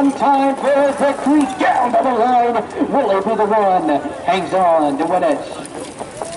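A man announces excitedly over a loudspeaker.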